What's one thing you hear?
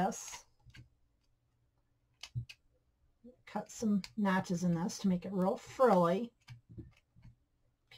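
Scissors snip thread.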